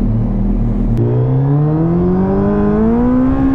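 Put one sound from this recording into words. A motorcycle engine rises steadily in pitch as the motorcycle speeds up.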